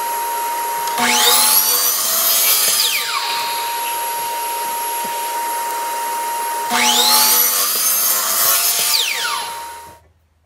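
A miter saw spins up and cuts through wood with a loud rising whine.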